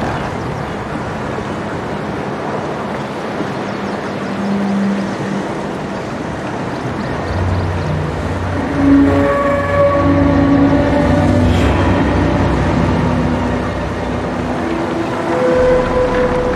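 Waves wash steadily against a shore.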